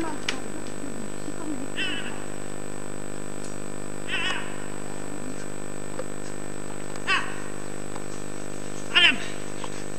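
A mountain bike's tyres roll over fallen leaves on a dirt track.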